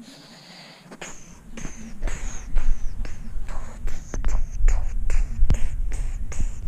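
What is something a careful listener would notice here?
Fabric rubs and bumps right against the microphone.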